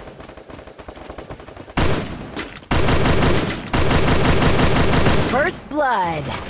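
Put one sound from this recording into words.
Rapid bursts of gunfire rattle loudly.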